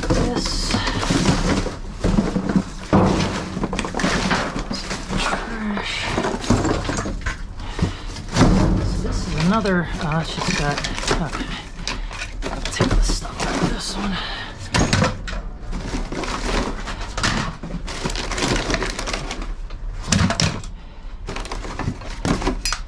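Cardboard rustles and scrapes as it is pulled and moved.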